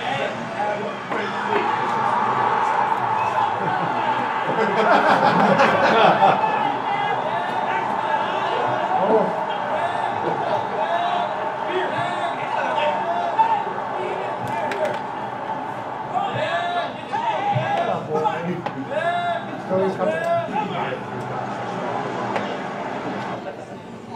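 A crowd cheers and shouts through a loudspeaker.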